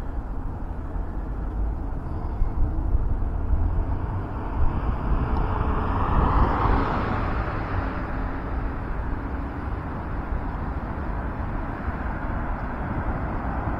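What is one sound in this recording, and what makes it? Cars drive past on a nearby road.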